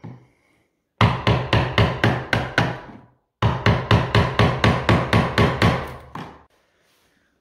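A chisel is tapped rapidly into wood.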